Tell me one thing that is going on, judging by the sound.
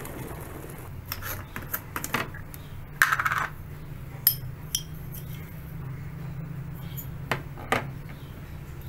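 A jar lid clicks and taps against a mug.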